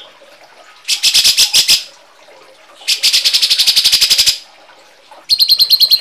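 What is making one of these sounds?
A bird chirps in fast, harsh bursts close by.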